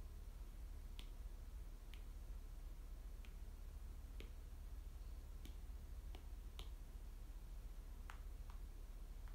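A pen scratches and taps softly on paper.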